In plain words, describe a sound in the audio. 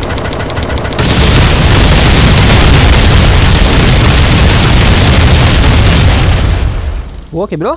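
A loud explosion booms and rumbles with a roaring blaze.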